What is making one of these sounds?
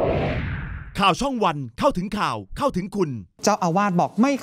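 A man reads out the news calmly through a microphone.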